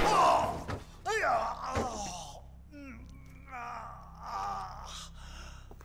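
A man gasps and groans breathlessly close by.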